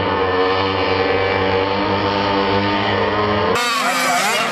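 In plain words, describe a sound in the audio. Small racing car engines drone loudly.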